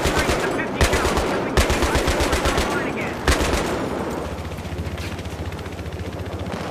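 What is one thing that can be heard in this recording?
A helicopter's rotor thumps steadily overhead.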